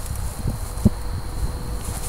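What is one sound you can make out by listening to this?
A man's footsteps thud softly across grass.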